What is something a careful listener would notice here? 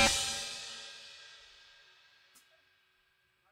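A cymbal rings out and slowly fades.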